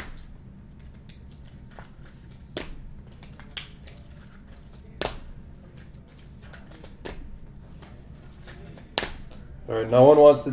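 Plastic wrappers crinkle and tap as hands handle card packs.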